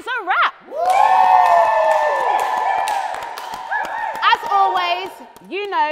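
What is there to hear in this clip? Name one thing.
A man laughs and whoops.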